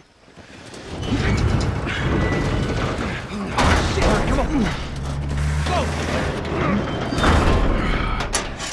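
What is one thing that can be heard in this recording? A heavy metal door grinds and scrapes as it is forced open.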